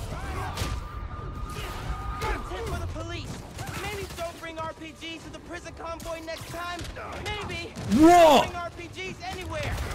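Punches and kicks thud in a brawl.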